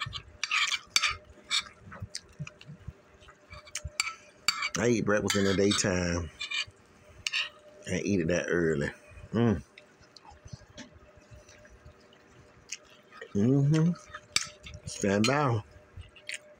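A metal spoon clinks and scrapes against a ceramic plate.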